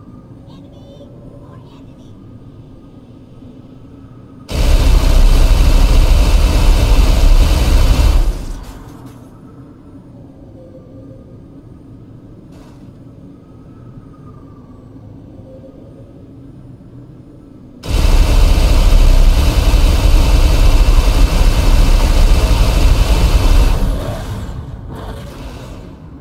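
A hovering vehicle's engine hums steadily.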